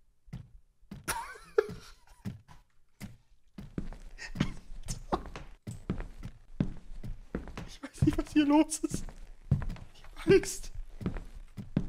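A young man laughs nervously into a close microphone.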